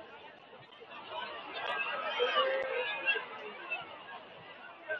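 A crowd cheers loudly as a play unfolds.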